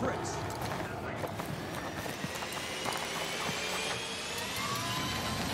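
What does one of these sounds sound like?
A jet engine whines and rises in pitch.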